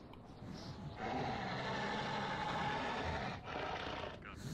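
A monster growls and snarls close by.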